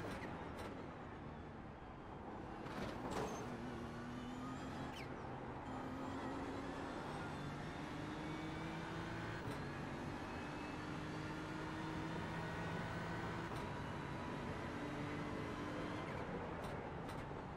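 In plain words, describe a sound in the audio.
A racing car engine roars, revving up and shifting through the gears.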